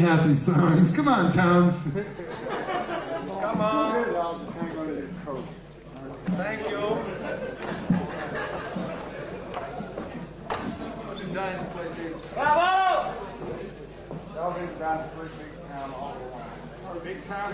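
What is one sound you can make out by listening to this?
A man speaks into a microphone on a stage.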